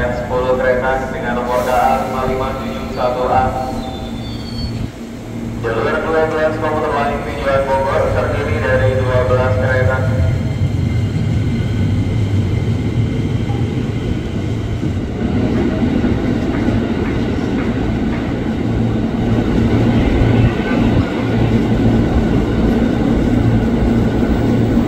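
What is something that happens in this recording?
A train rumbles and rolls along the tracks.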